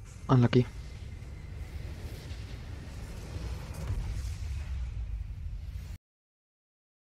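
Magical blasts whoosh and rumble in a game battle.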